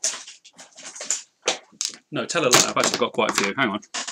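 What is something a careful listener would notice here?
Plastic markers clatter onto a table.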